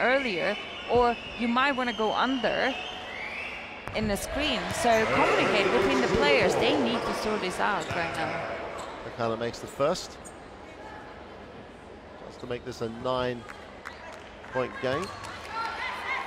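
Sneakers squeak sharply on a court.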